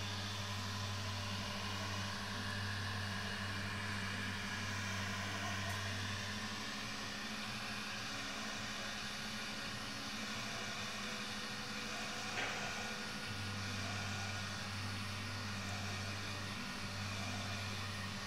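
A heat gun blows with a steady roaring hum.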